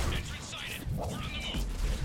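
An electric crackle zaps loudly.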